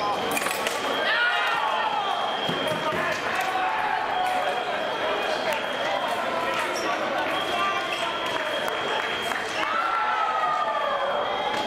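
Shoes squeak on the floor as fencers move.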